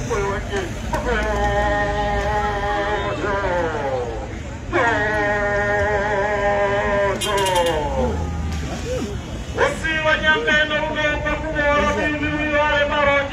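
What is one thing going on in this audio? A group of women sings loudly nearby, holding long notes.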